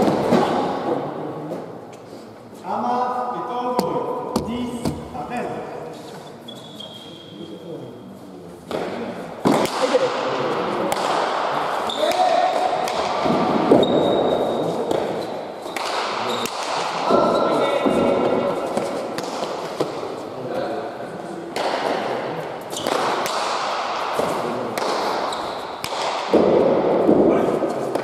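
A ball smacks sharply against a wall and floor, echoing in a large hall.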